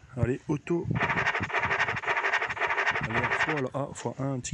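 An electronic game plays a rapid scratching, rattling effect.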